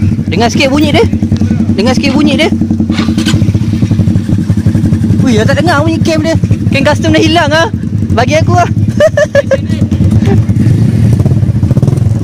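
A motorcycle engine idles with a rapid, throbbing rumble close by.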